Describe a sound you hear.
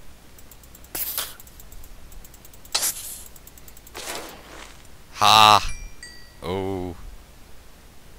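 A monster in a game groans when it is struck.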